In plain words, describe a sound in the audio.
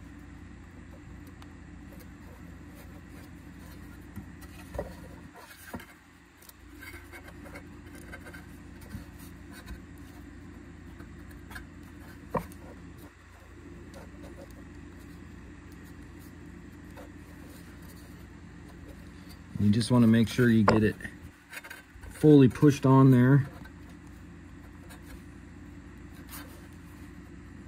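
A rubber edge trim squeaks and rubs as it is pressed onto a plastic cover.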